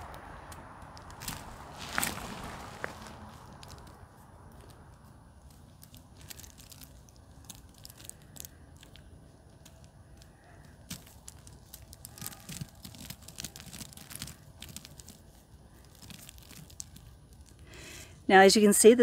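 Soil and roots rustle softly in a woman's hands.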